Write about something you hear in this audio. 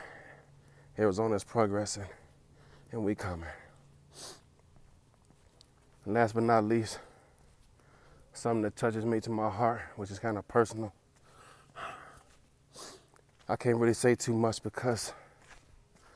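A man talks calmly and close up, in short bursts with pauses.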